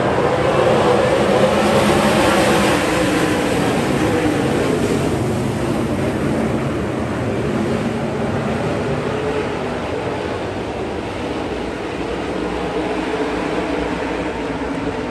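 A pack of racing car engines roars loudly around a dirt track.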